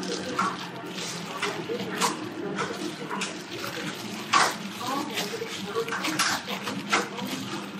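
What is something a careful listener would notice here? Gloved hands squish and pat raw ground meat.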